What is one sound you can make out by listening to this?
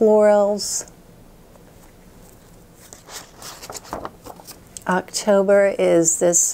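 A woman speaks softly and close to a microphone.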